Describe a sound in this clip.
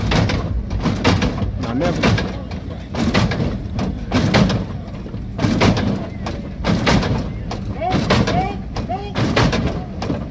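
Men in a small crowd cheer and shout outdoors.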